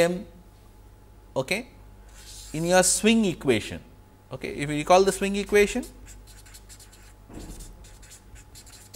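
A marker scratches and squeaks on paper.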